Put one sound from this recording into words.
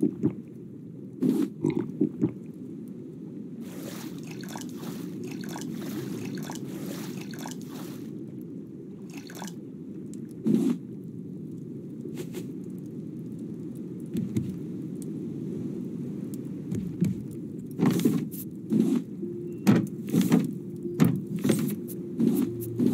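Water laps and sloshes steadily against a wooden raft.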